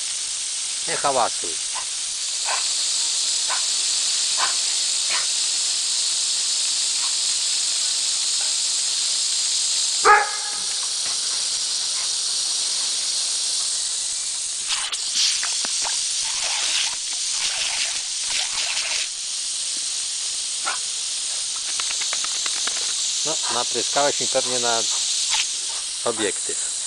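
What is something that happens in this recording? Water hisses steadily from a garden hose spray.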